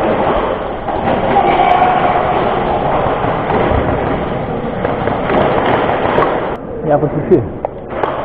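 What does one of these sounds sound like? Footsteps scuff quickly across a hard concrete floor in a large echoing hall.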